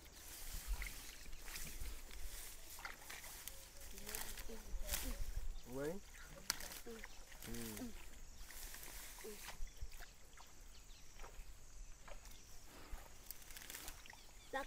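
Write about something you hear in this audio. Hands dig and squelch in wet mud.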